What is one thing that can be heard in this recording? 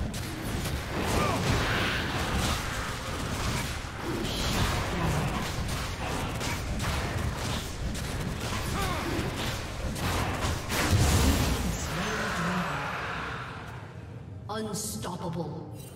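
Game spell effects whoosh, crackle and clash in a fast fight.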